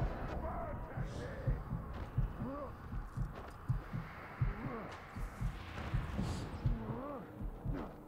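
A climbing figure's hands and feet thud softly against a stone wall.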